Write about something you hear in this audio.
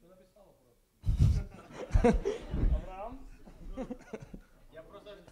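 Several men laugh nearby.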